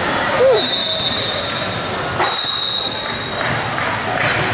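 A referee blows a whistle in short shrill blasts.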